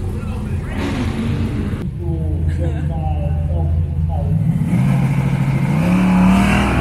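A car engine idles with a loud, rough rumble.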